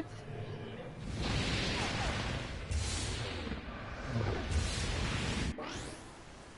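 An explosion roars with a rush of fire.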